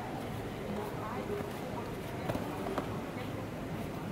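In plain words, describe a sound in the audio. A body thuds onto a padded mat.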